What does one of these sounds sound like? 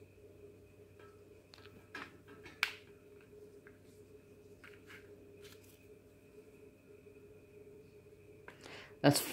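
Paper rustles and beads click softly as hands handle a beaded strip.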